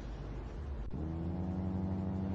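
A car engine drones as the car drives along.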